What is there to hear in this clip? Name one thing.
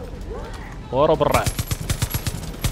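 A heavy machine gun fires rapid shots.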